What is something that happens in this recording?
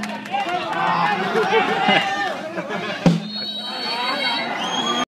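A crowd of spectators shouts and cheers nearby outdoors.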